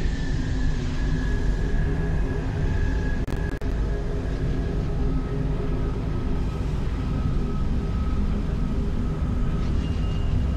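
A spacecraft's engines hum and rumble low as it flies past.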